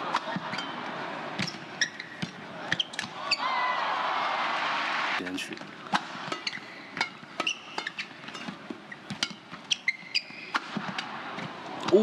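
A shuttlecock is struck sharply back and forth with rackets.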